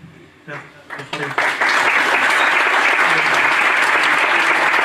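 A large audience claps and applauds loudly.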